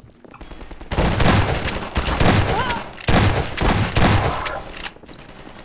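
Shotgun blasts boom loudly several times in an echoing stairwell.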